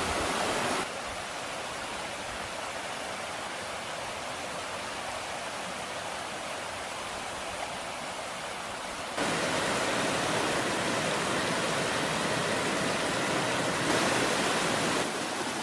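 A shallow stream babbles and trickles over rocks.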